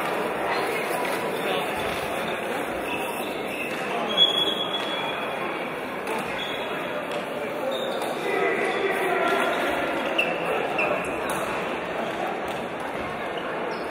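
Many men talk and call out at once in a large echoing hall.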